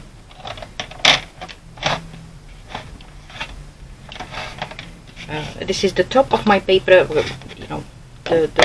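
A sheet of stiff paper rustles and scrapes as it is handled.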